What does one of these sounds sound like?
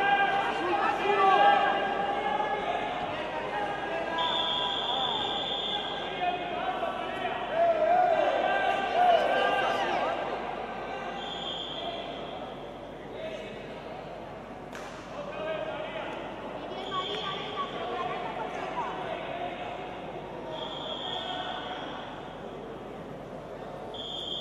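Men shout loudly from the side of the mat in an echoing hall.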